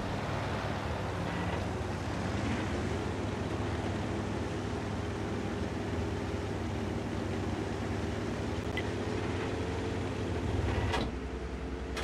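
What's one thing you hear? A heavy tank engine rumbles steadily nearby.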